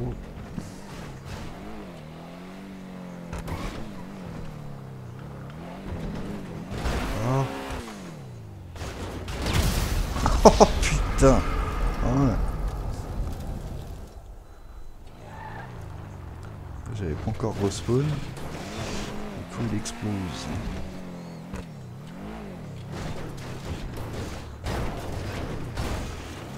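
A car engine revs up and down, rising and falling in pitch.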